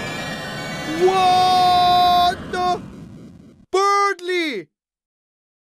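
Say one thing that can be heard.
A young man lets out long, drawn-out cries close to a microphone.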